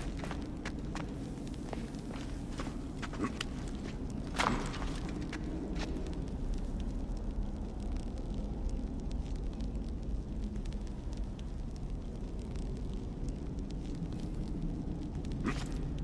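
A torch flame crackles and hisses.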